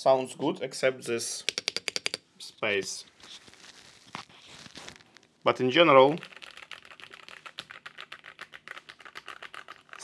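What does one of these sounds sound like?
Keys clack rapidly as someone types on a mechanical keyboard.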